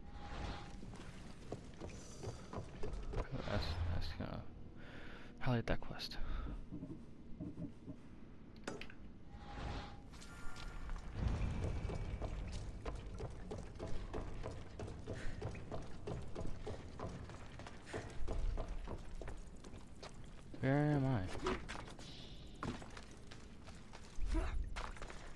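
Footsteps thud on wooden boards and stone.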